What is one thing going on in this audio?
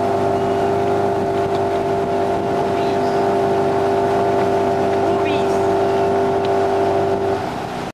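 A boat's outboard motor drones steadily close by.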